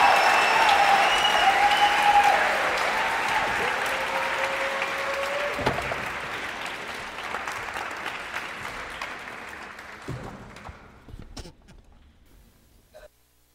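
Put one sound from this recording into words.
An audience cheers loudly in a large hall and slowly quiets down.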